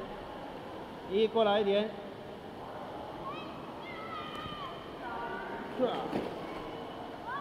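Water splashes as children move through it.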